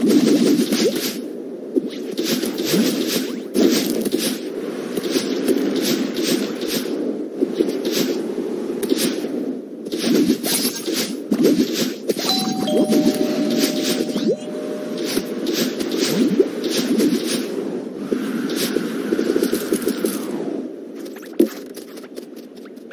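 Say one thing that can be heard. Quick whooshing and thudding game sound effects play in rapid bursts as a small character dashes and jumps.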